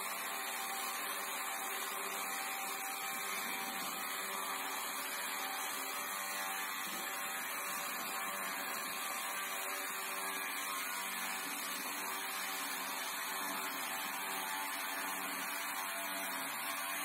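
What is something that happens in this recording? A chainsaw mill engine roars steadily while its chain cuts along a log.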